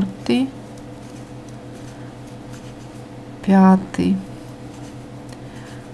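Yarn rustles softly as a crochet hook pulls it through.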